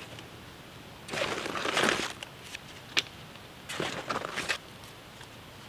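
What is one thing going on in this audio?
Hands rustle plastic packaging.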